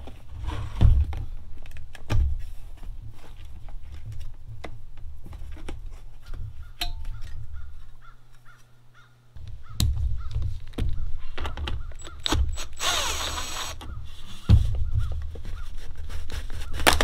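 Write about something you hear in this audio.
Plastic parts click and knock as hands handle them.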